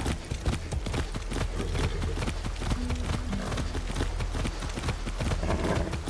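A horse's hooves pound rapidly over ground.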